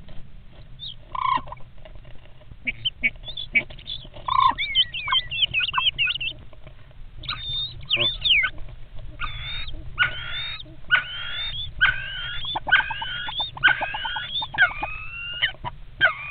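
Starlings chirp and whistle close by.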